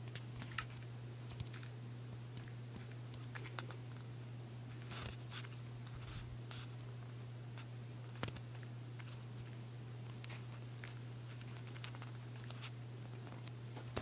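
Footsteps tap on stone at an uneven pace.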